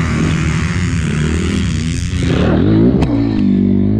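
A dirt bike crashes into the dirt with a thud.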